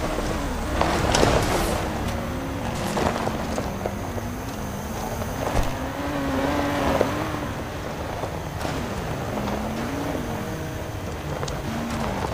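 A car engine revs up and down throughout.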